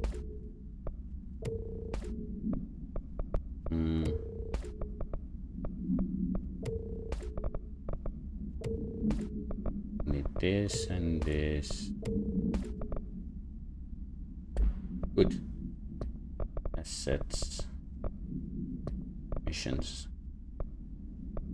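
Soft menu clicks tick as selections change in a video game.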